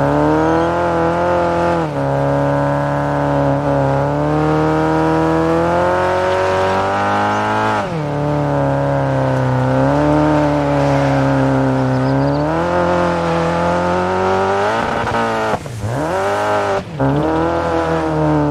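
A rally car engine revs hard and shifts gears, its pitch rising and dropping.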